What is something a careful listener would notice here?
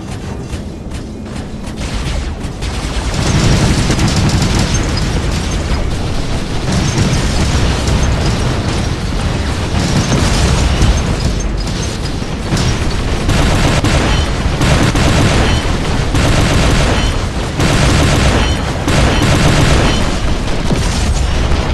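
Heavy robot footsteps thud and clank steadily.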